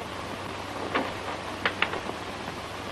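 A door latch clicks as a door opens.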